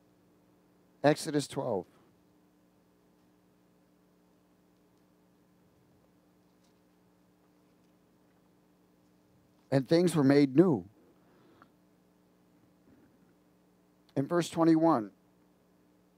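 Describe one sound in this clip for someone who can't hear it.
A middle-aged man speaks in short phrases through a headset microphone, with long pauses between them.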